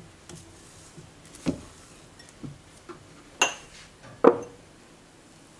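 A spatula scrapes and taps against a glass bowl.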